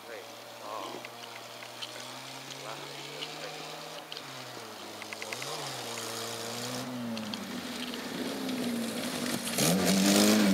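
A car engine revs and roars, growing louder as the car approaches.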